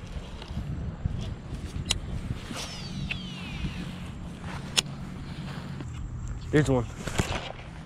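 A fishing reel clicks as its handle turns.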